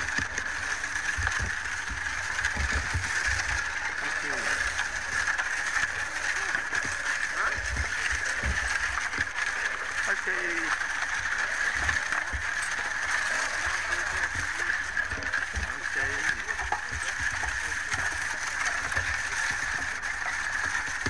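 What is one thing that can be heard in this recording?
A wooden-wheeled ox cart rumbles over a dirt track.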